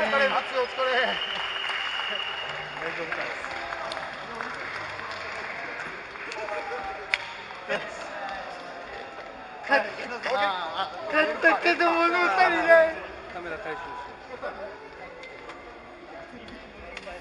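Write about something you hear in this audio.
Men and women talk and call out across a large echoing hall.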